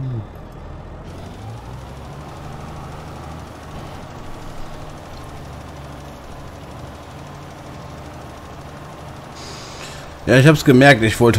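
A spreader scatters material with a soft hiss.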